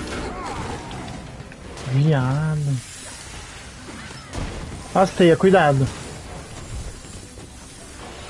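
Heavy blows and blasts crash during a fight.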